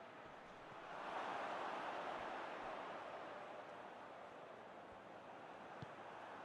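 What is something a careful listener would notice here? A stadium crowd roars loudly and then slowly fades.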